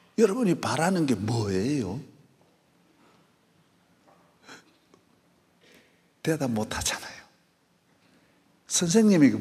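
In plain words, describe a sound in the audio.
A man speaks with animation through a microphone in a large, echoing room.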